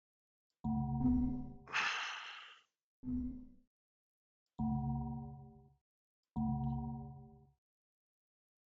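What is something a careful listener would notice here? A deep, ringing musical chime sounds with each change of menu choice in a game.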